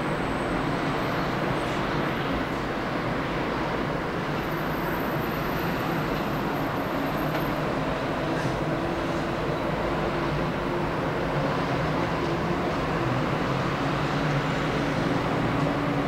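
Car traffic hums steadily along a road.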